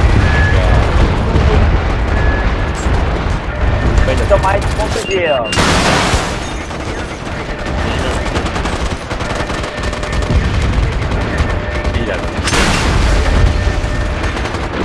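Gunfire and explosions rumble in a battle.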